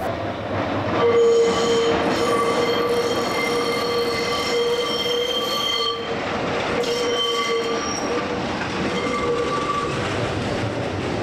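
Tram wheels squeal loudly on a curve.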